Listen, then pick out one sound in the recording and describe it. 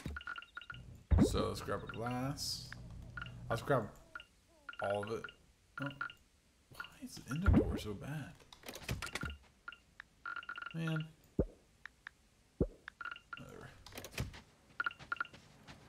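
Short soft blips chime repeatedly as game menu items are picked.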